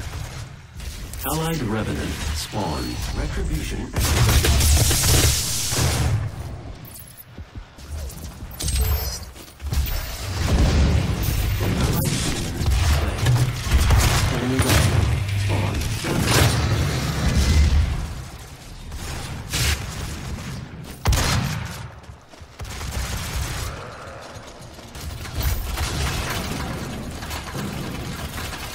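Shotguns fire with loud booms.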